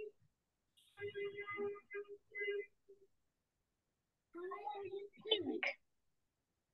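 A child speaks faintly through an online call.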